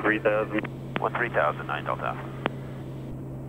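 A man talks calmly through a headset radio.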